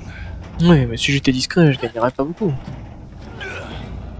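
A heavy metal hatch creaks open.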